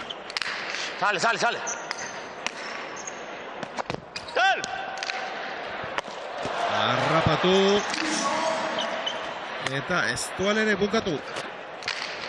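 Shoes squeak sharply on a smooth floor.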